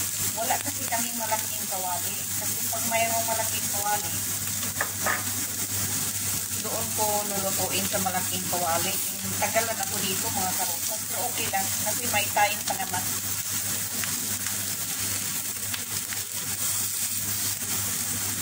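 A metal spatula scrapes and taps against a frying pan.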